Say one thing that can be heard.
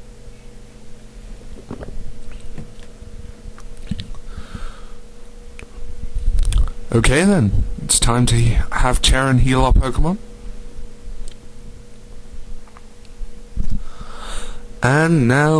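Video game music plays quietly and steadily.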